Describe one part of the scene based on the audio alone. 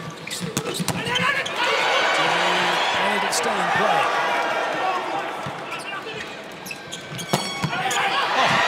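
A volleyball is struck hard with sharp slaps.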